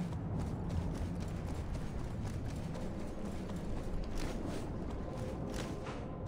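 Footsteps patter quickly on a metal walkway.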